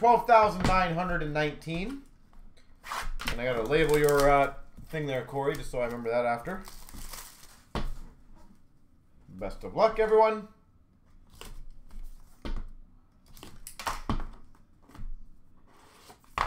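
Hands tap and slide small cardboard boxes.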